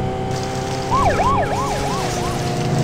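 A police siren whoops briefly.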